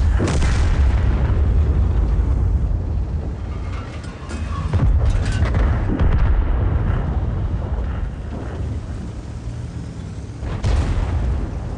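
Tank guns fire with loud booms.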